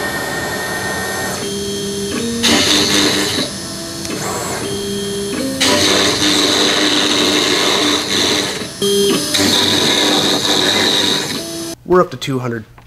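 A machine whirs loudly and changes pitch in steps.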